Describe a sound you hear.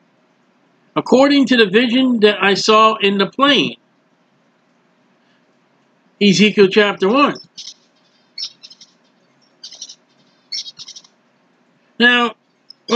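A middle-aged man speaks calmly into a microphone, heard through an online call.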